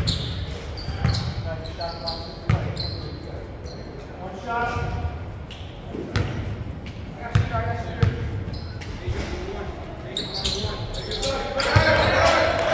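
Young men call out and shout in a large echoing gym.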